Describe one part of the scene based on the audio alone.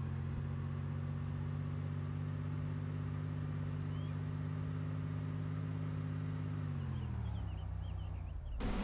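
A car engine hums steadily, then winds down as the car slows to a stop.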